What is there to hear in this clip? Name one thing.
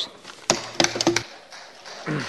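Headphones knock and rustle as they are put on.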